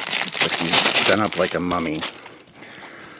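Plastic wrapping crinkles and rustles loudly close by.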